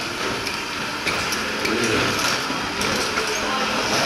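Suitcase wheels roll over a hard floor.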